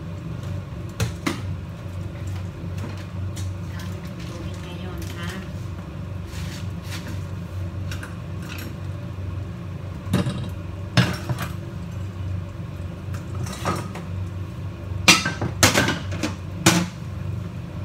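Metal pans and utensils clank and clatter.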